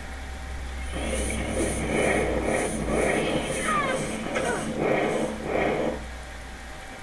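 Magic spells blast and crackle in a fight.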